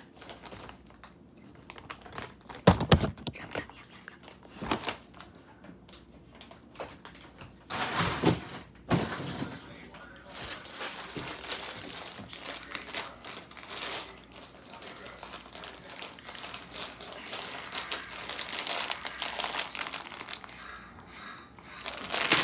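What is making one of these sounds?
A plastic bag crinkles in a girl's hands.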